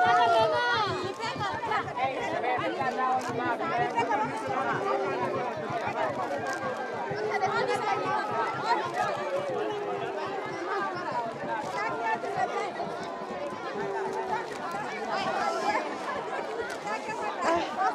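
A large crowd of children and adults chatter and call out all around, outdoors.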